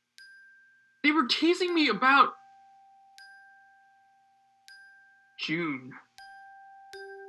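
A young man speaks through an online call.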